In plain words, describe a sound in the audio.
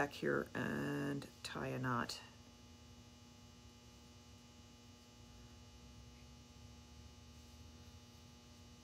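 Hands fiddle with a small metal pendant, making faint clicks.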